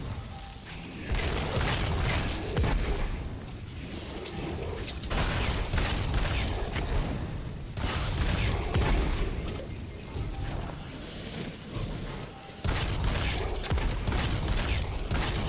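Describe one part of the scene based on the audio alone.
A gun fires in bursts.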